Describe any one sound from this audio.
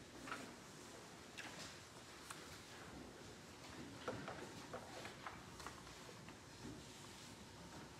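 Footsteps knock on a wooden floor in a quiet echoing room.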